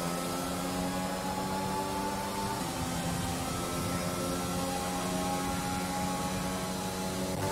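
A racing car engine screams at high revs, shifting gears at speed.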